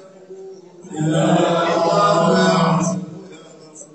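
A large group of men chant loudly together in unison.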